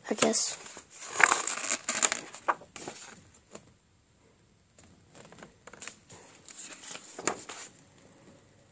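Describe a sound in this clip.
Paper pages rustle and flip as a book is leafed through.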